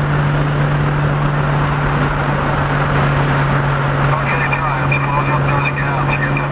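Tyres and wind roar loudly on an open road.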